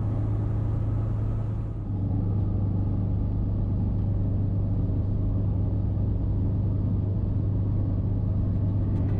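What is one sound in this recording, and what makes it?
Tyres roll over a road surface.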